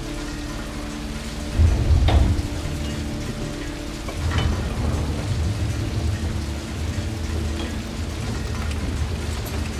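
A heavy metal wheel turns with clanks.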